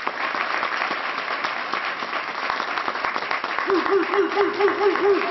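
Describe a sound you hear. A large crowd applauds steadily.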